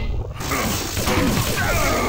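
A crackling energy beam weapon fires in a steady buzzing stream.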